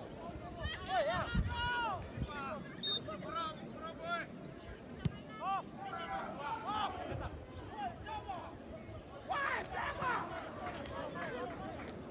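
Men shout to each other across an open field, heard from a distance.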